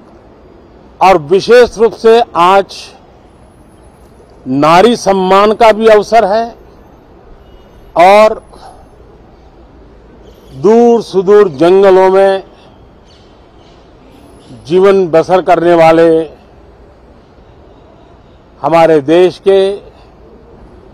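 An elderly man speaks calmly into microphones, in short phrases with pauses.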